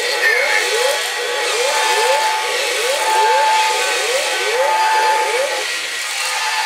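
Toy robots play quick, repeated rising electronic sound effects.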